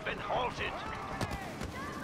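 A blaster pistol fires a shot.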